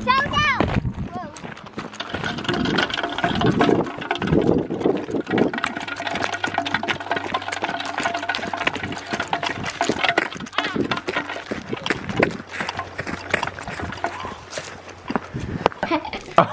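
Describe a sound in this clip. A bicycle wheel rolls and crunches over gravel.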